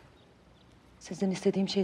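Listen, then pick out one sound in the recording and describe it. An older woman speaks close by.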